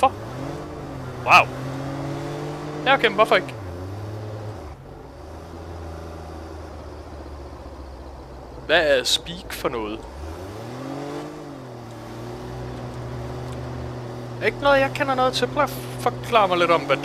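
A sports car engine hums steadily, rising and dropping in pitch as it shifts gears.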